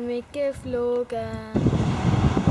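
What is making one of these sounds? A boy speaks calmly close by.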